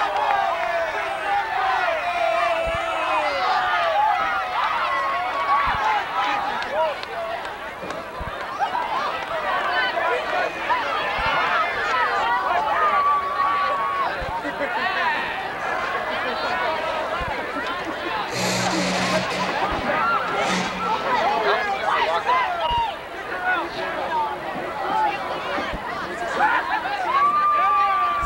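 A crowd of young women chatter and cheer excitedly nearby.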